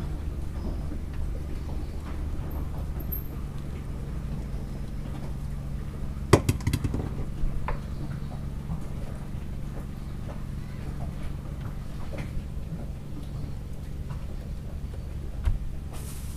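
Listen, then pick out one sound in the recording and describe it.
A boat engine hums steadily and low.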